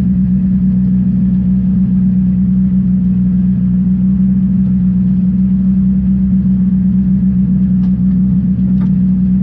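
A race car engine drones loudly at a steady pitch from inside the cabin.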